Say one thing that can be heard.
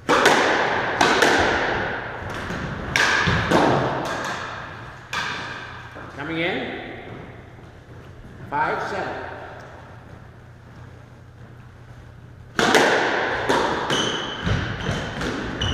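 A squash ball smacks sharply against the walls in a bright, echoing court.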